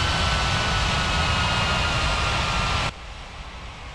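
A jet engine roars loudly with a high whine, then cuts off suddenly.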